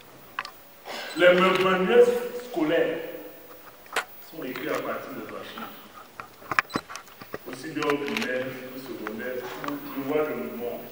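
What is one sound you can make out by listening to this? An elderly man speaks into a microphone with animation, in an echoing hall.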